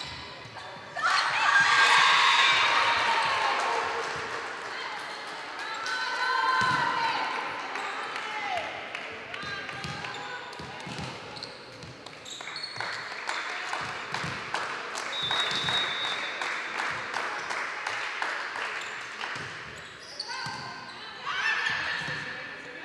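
Young women shout and cheer.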